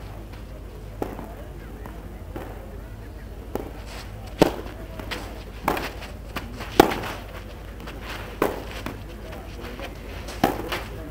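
A tennis racket strikes a ball with sharp pops, back and forth.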